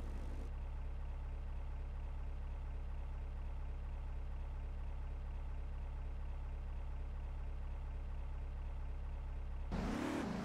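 A man speaks with animation from inside a car.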